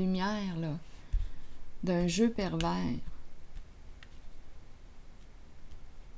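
Playing cards slide across a table.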